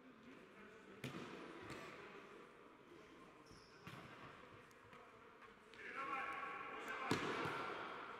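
A football is kicked with sharp thuds in a large echoing hall.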